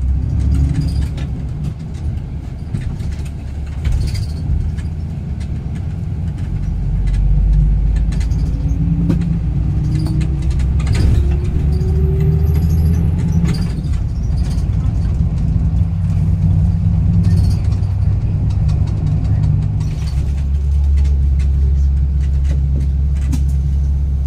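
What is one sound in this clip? A bus engine rumbles steadily while riding along a road.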